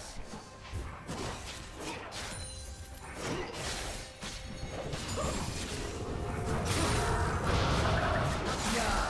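Spell blasts and weapon strikes crackle and clash in a fast battle.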